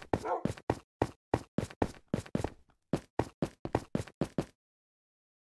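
Footsteps thud quickly on stone.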